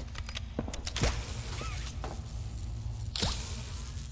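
A mechanical grabber launches with a springy thump and its cable whirs out.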